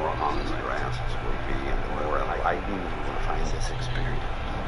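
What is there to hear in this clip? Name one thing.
A middle-aged man speaks calmly and closely.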